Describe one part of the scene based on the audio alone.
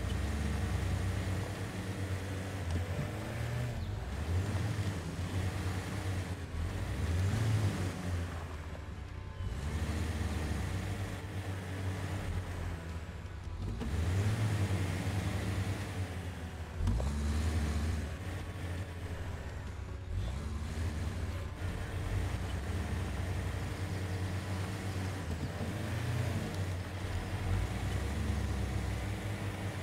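Tyres crunch over rocky ground.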